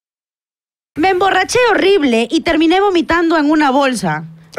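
A young woman speaks with animation into a close microphone.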